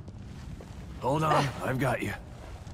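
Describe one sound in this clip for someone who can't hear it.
A man speaks urgently and close by.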